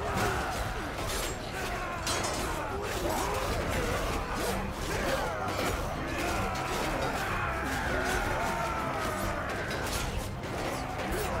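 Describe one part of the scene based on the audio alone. Metal weapons clash and clang repeatedly.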